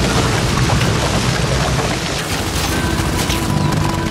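A large winged creature screeches.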